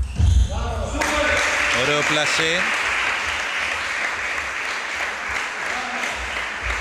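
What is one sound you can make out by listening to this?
A crowd claps and cheers in an echoing hall.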